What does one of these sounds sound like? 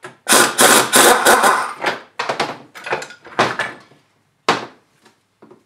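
An air impact wrench rattles in loud, short bursts.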